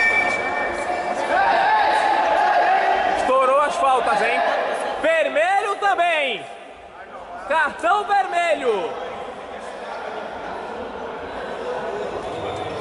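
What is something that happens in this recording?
Spectators talk and call out in a large echoing hall.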